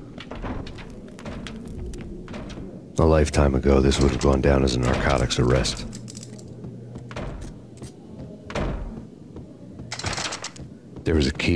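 Footsteps thud softly on a floor.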